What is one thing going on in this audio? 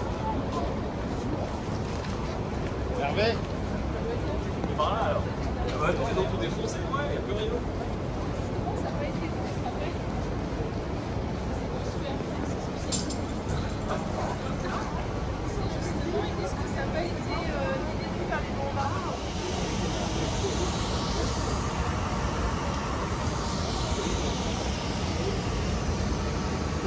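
Men and women chat nearby in a crowd outdoors.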